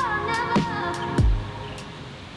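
A young girl calls out in a high voice nearby.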